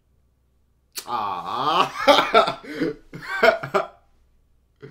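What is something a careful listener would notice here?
A young man laughs loudly and heartily close by.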